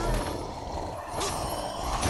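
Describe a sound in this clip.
A burst of flame roars.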